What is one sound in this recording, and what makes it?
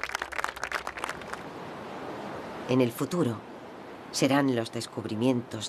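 Gentle waves wash on the open sea.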